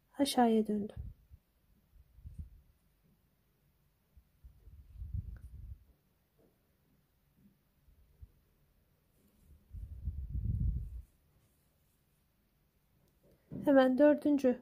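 Thread rustles softly as a needle is pulled through fabric.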